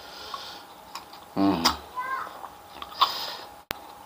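A man chews and smacks his lips while eating.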